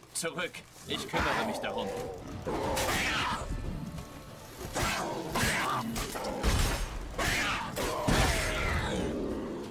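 A sword swishes and strikes in a fight.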